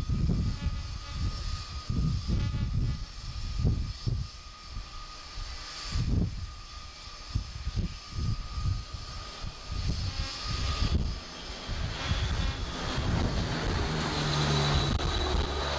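Propeller engines of an aircraft drone loudly as it approaches and lands.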